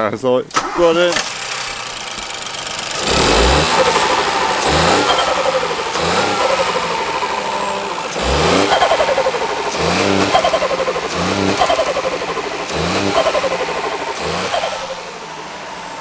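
A car engine runs with a steady rumble.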